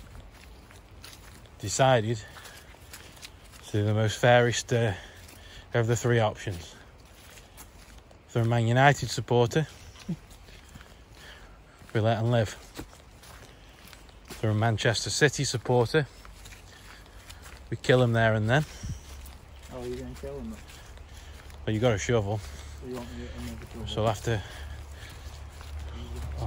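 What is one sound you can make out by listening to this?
Footsteps rustle through low undergrowth.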